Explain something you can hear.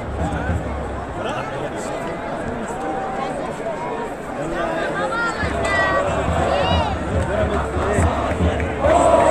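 A crowd of men cheers and chants loudly outdoors.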